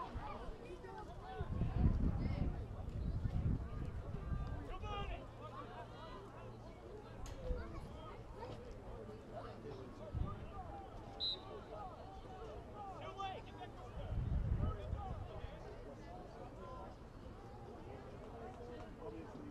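Many young men's voices chatter and call out outdoors nearby.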